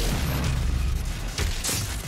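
A monster snarls and roars up close.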